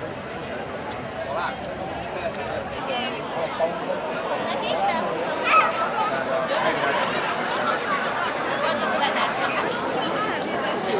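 A crowd of young people chatters outdoors.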